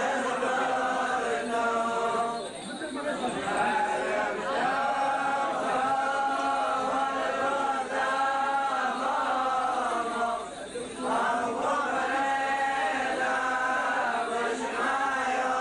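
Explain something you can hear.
A crowd of men and women sings a slow, mournful chant close by.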